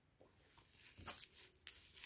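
A metal key ring jingles as it is picked up.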